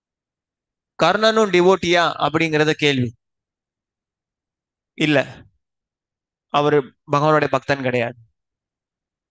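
A young man speaks calmly into a headset microphone, heard over an online call.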